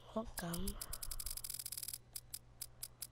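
Quick, sharp menu ticks repeat in a rapid run.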